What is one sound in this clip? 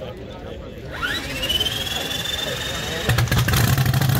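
A starter motor whines and rises in pitch.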